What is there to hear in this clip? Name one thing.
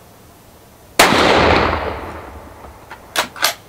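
A rifle fires a single loud shot that echoes outdoors and fades.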